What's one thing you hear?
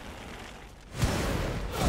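A magical blast bursts with a loud whoosh.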